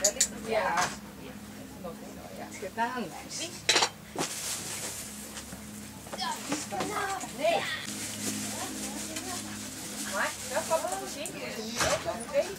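A woman talks calmly nearby.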